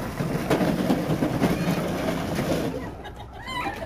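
Plastic wheels of a child's ride-on toy car rumble over concrete.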